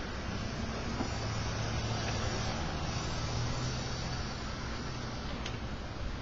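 Pages of a book rustle as an elderly man turns them.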